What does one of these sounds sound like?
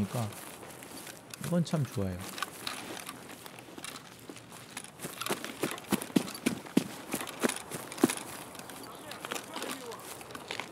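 Footsteps crunch through grass and undergrowth.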